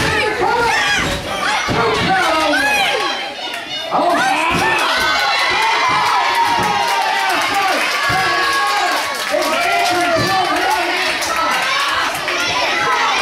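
Bodies thud heavily on a wrestling mat.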